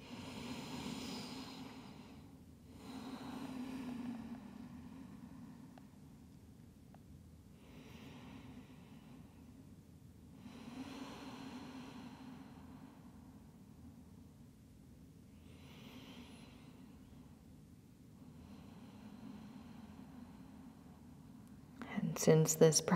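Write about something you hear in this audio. A woman breathes slowly and deeply, in and out.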